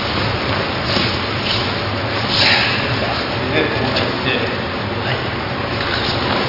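Bare feet shuffle and slide across a mat.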